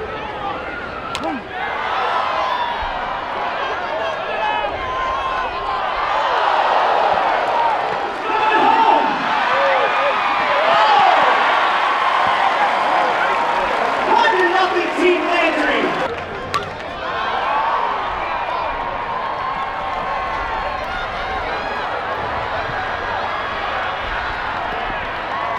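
A large crowd murmurs and chatters in an open stadium.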